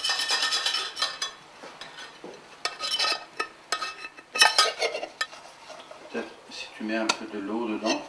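A metal pot clanks against a sink.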